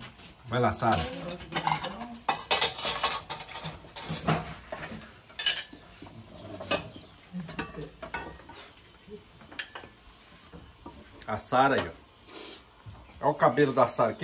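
A spoon clinks against pots and plates.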